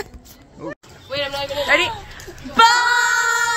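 A group of teenage girls shout and cheer excitedly.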